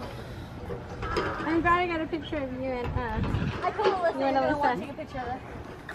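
A woman talks animatedly close by.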